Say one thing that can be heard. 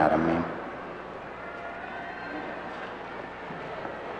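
A man speaks slowly and solemnly through a microphone in a large echoing hall.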